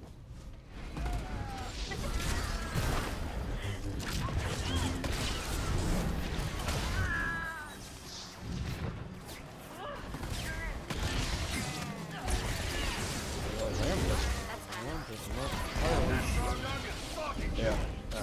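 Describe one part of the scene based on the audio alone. Spells crackle and blast as game characters fight.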